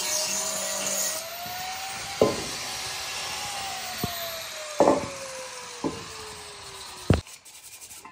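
An angle grinder whines as it grinds metal.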